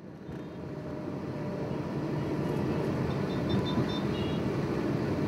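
Traffic rumbles steadily around a car, heard from inside.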